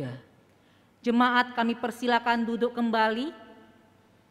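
A woman sings into a microphone in an echoing hall.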